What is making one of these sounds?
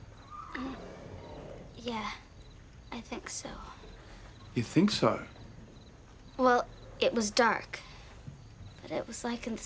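A young girl speaks quietly and hesitantly nearby.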